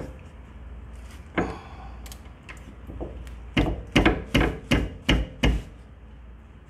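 A ratchet wrench clicks as a bolt is turned.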